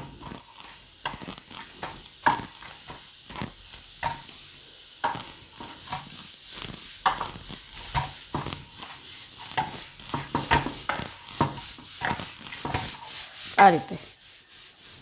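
Hands knead dough in a metal bowl with soft, repeated thumps and scrapes.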